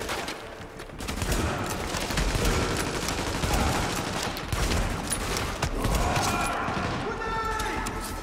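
An assault rifle fires rapid bursts in an echoing tunnel.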